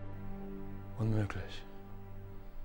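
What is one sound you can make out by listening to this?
A man speaks forcefully, close by.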